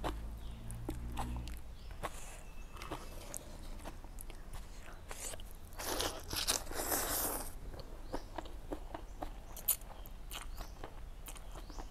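Small wet chewing and smacking sounds come from a young woman eating.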